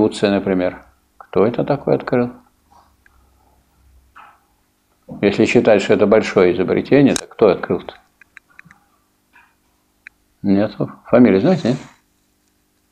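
An elderly man speaks calmly in a small room, with pauses.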